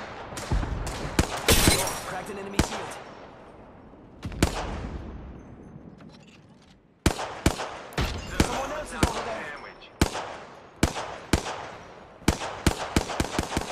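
Rapid gunshots ring out in bursts with a short echo.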